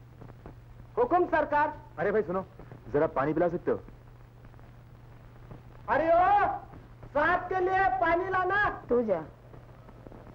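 A man speaks loudly.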